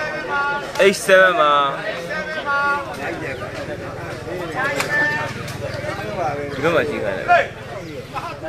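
Young men shout to each other.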